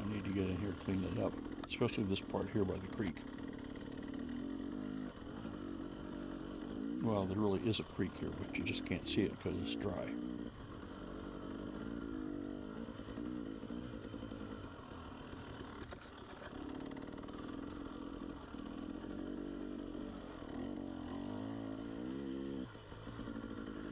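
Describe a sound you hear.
A two-stroke dirt bike revs and eases off as it rides along a dirt trail.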